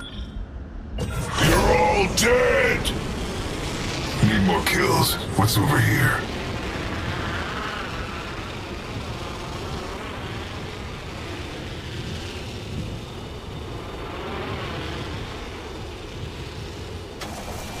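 Air rushes steadily as a character skydives.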